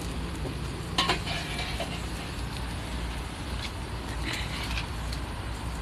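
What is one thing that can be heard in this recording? Metal tongs clatter against a tray.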